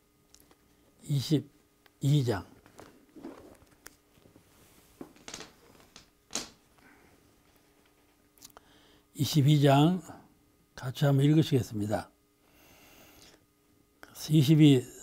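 An elderly man reads aloud slowly and calmly into a close microphone.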